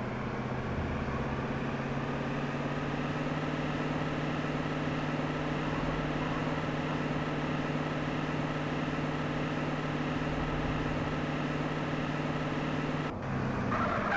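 A car engine hums steadily as it drives.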